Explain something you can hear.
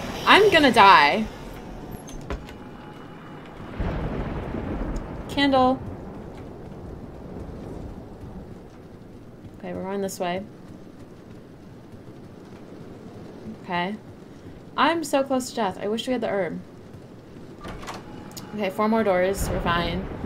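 A young woman talks with animation into a close microphone, pausing often.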